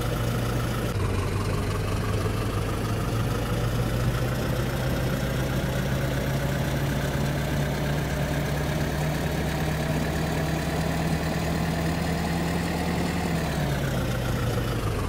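A bus engine drones and climbs in pitch as the bus gathers speed, then drops away.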